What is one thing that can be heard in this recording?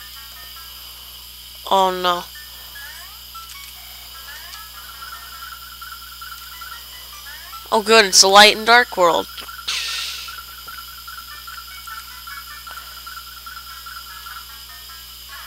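Soft electronic game music beeps steadily.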